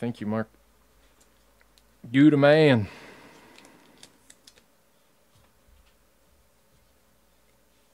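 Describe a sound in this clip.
Trading cards rustle softly in a hand.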